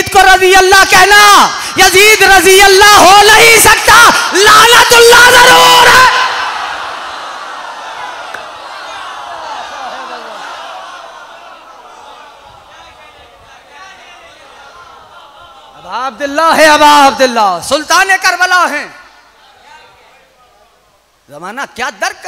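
A man chants loudly and passionately into a microphone, heard through loudspeakers in a large echoing hall.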